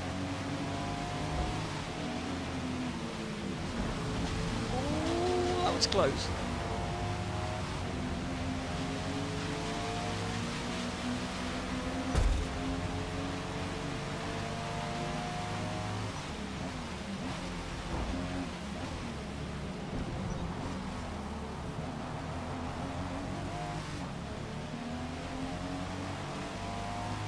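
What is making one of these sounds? A car engine roars and revs up and down as gears shift.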